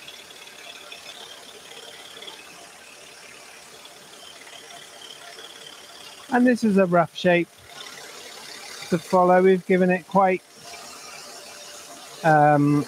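A scroll saw runs with a steady, faint buzz as it cuts through thin wood.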